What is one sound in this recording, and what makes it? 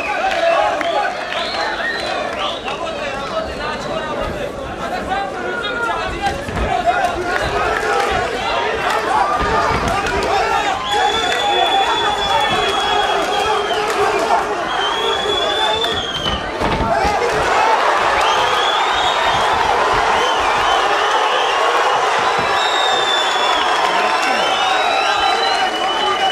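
A crowd shouts and cheers loudly, echoing around an indoor hall.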